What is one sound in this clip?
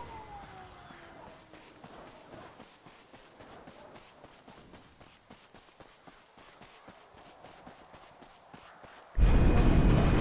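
Quick footsteps crunch on dry dirt.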